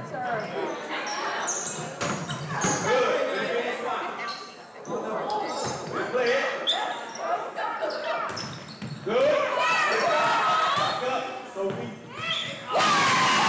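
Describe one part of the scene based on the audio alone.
A volleyball is struck with sharp thuds in a large echoing gym.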